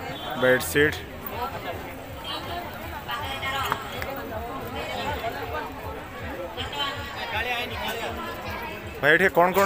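A busy crowd murmurs and chatters nearby.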